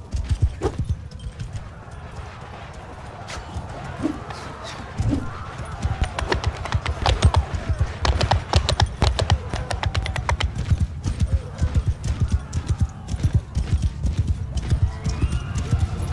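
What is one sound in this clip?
A horse gallops with heavy, rapid hoofbeats.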